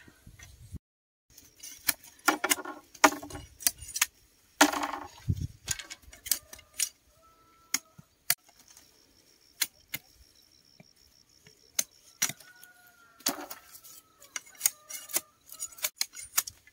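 A knife splits and scrapes bamboo strips with sharp cracks and knocks.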